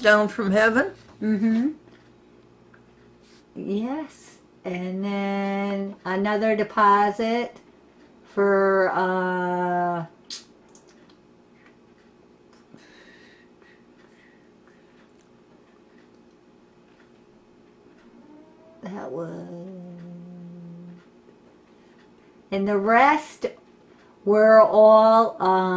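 An elderly woman sings in a wavering voice close by, with pauses between phrases.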